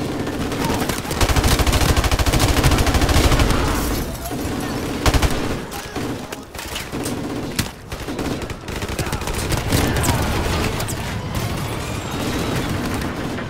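Automatic rifles fire in rapid bursts.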